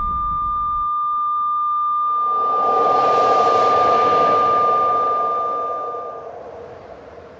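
A heart monitor sounds a long, steady flatline tone.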